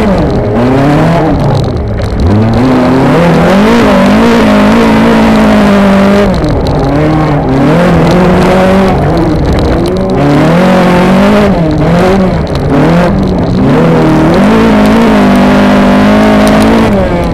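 A race car engine revs hard from inside the cabin, rising and falling through the gears.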